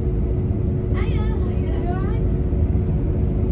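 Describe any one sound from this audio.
A door button chimes with a warbling tone.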